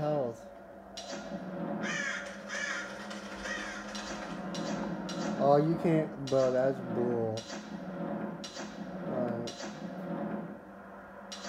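Game menu sounds whoosh and click from a television.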